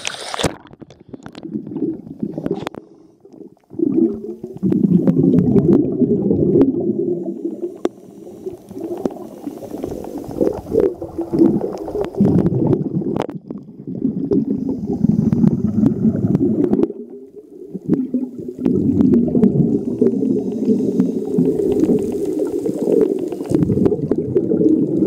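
A diver's breathing bubbles rumble loudly in bursts underwater.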